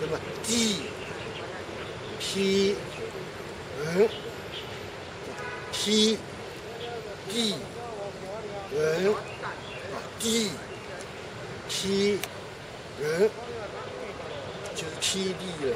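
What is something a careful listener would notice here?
An elderly man speaks calmly and close by, outdoors.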